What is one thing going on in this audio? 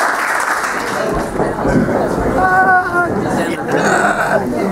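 A crowd of people chatter in a room.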